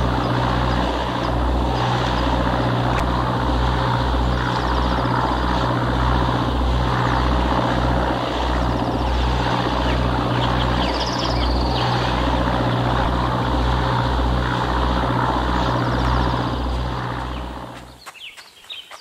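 A boat engine throbs steadily with a rapid pulse.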